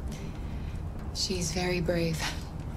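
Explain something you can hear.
A young woman speaks gently.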